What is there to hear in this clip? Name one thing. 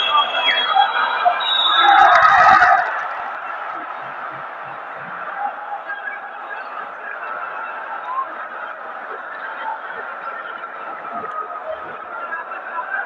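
Basketball shoes squeak on a hardwood court.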